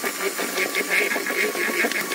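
An electric hand mixer whirs in a bowl.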